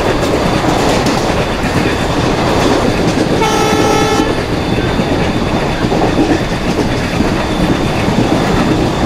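A train rumbles and clatters steadily along the rails.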